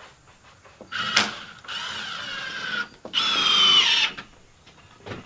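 A drill whirs as it drives screws into wooden boards.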